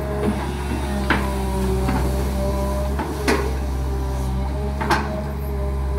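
An excavator's metal arm clanks and knocks.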